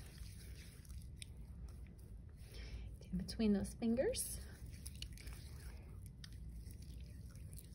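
Wet, soapy hands rub together with soft squelching.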